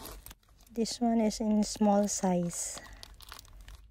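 A zipper is pulled open on a small bag.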